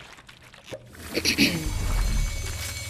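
A crackling magical blast bursts and hisses.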